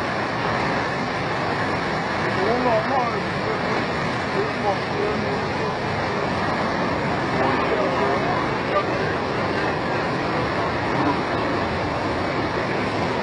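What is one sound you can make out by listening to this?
Floodwater rushes and roars loudly and steadily, close by.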